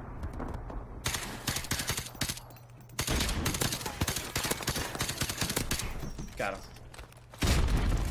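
Suppressed gunfire rattles in quick bursts.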